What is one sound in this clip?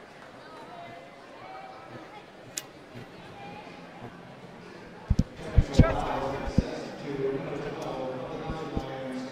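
A crowd murmurs in the background of a large echoing hall.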